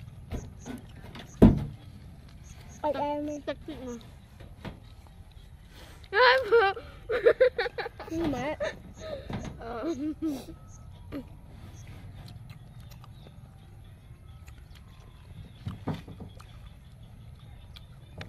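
Young girls chew crunchy vegetables.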